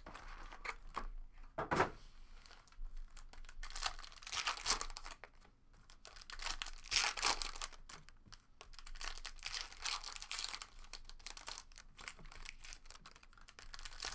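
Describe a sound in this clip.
Cards rustle and tap as they are handled on a table.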